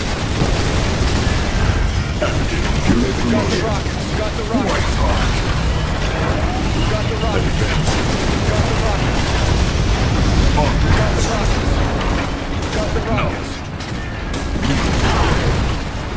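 Laser weapons zap and crackle in a battle.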